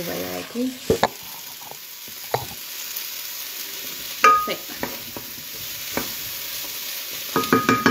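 A wooden spoon knocks against a pot.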